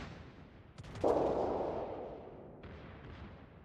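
A shell explodes with a roar.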